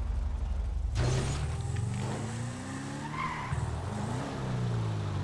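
A car engine revs and pulls away.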